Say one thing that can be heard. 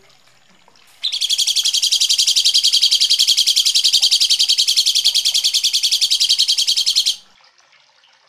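A bird sings a fast, harsh, rattling trill, loud and close.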